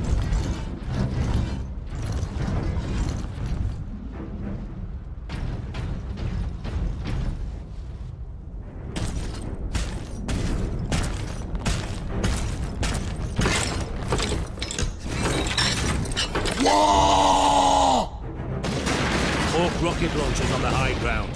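Heavy armoured footsteps thud on stone.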